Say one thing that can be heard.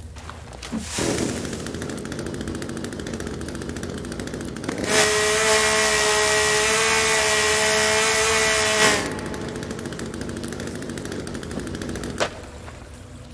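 A chainsaw engine idles and rattles.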